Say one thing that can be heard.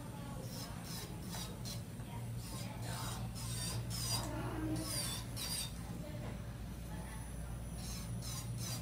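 An electric nail file whirs steadily as it grinds a fingernail.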